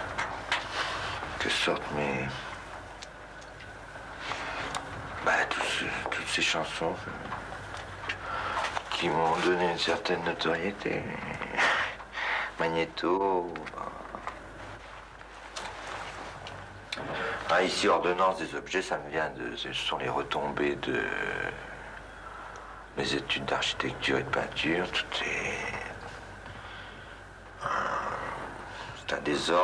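A second man answers calmly into a microphone.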